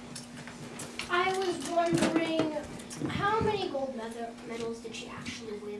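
A young girl speaks calmly to a room.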